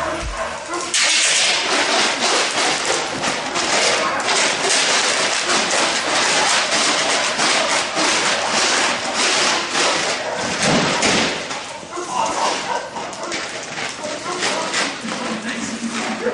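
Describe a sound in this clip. A dog barks loudly and rapidly in an echoing hall.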